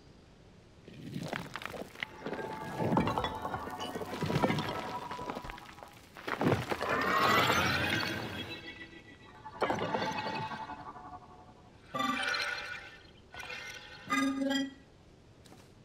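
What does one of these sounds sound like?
Heavy stone blocks grind and clunk as a large machine unfolds.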